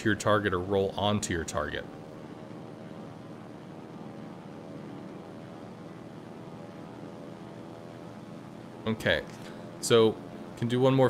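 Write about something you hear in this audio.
A ship's engine hums steadily.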